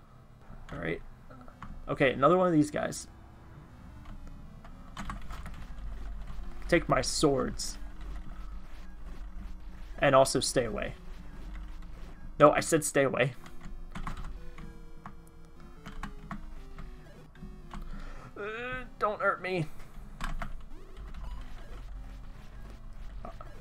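Retro video game music and bleeping effects play steadily.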